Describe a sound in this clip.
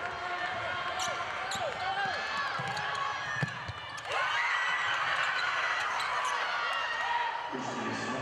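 Basketball shoes squeak on a hardwood floor.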